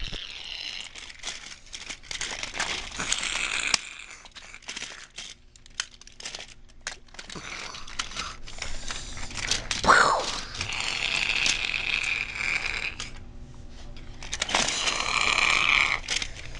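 Plastic toy pieces click and clatter together.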